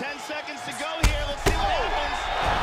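Heavy punches land with thuds.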